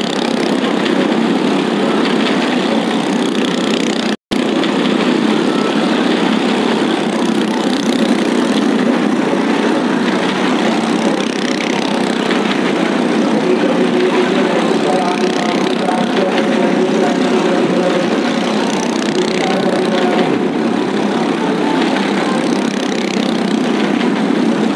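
A car engine roars.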